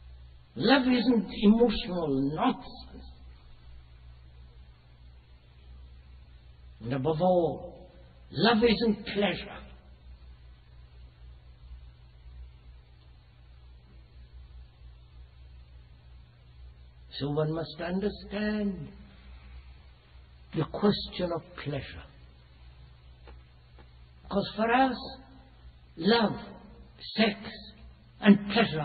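An elderly man speaks calmly and slowly, with long pauses.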